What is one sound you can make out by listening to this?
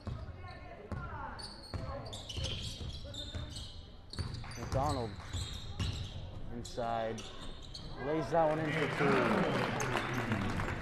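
Sneakers squeak sharply on a hardwood court in an echoing gym.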